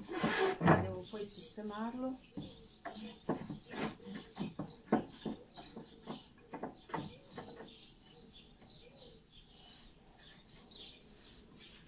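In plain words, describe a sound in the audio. Small wooden parts click and knock against a tabletop.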